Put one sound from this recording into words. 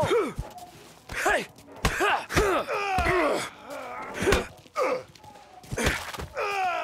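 A wooden bat strikes a man with heavy thuds.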